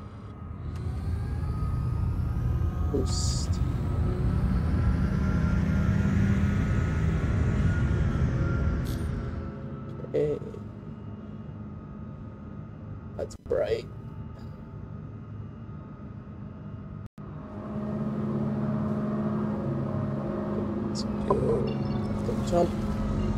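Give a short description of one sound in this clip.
A spaceship engine rumbles deeply.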